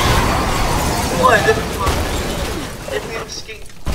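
A car crashes with loud crunching metal and shattering glass.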